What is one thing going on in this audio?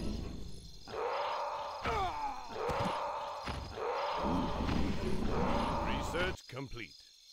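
Swords clash and strike in a fast fight.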